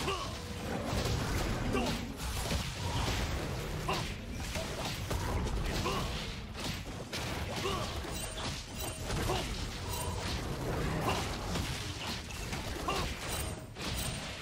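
Game spell effects and hits crackle and burst in quick succession.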